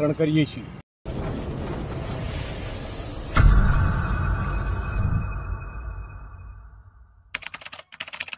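A whooshing burst of smoke rushes and booms.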